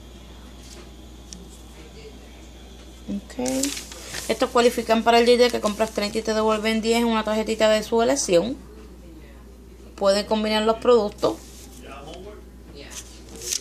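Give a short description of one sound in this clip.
Glossy paper pages rustle and crinkle as they are handled.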